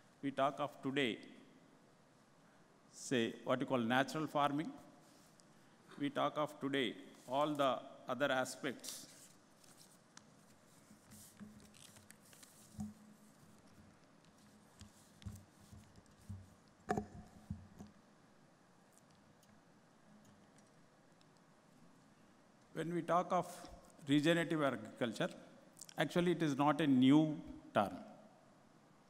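A middle-aged man speaks calmly into a microphone, in bursts with long pauses.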